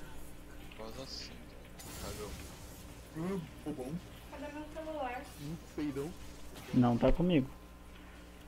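Magic spells crackle and whoosh in a fight between game characters.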